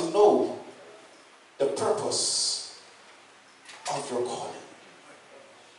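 A man calls out loudly through a loudspeaker in an echoing hall, in short bursts.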